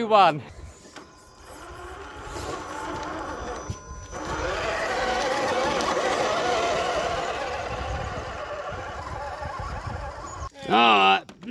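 A small electric motor whines as a toy truck drives.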